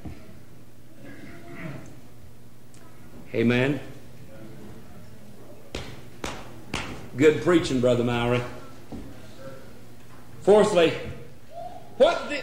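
A middle-aged man speaks with emphasis through a microphone, in bursts with pauses between them.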